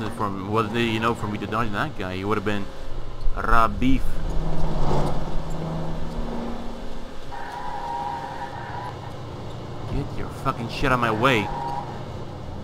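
Car tyres screech while cornering.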